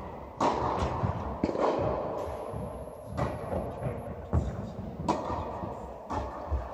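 Tennis balls are struck with rackets, each hit echoing through a large hall.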